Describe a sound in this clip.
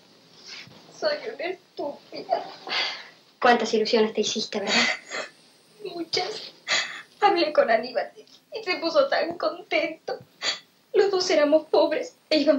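A young woman speaks tearfully.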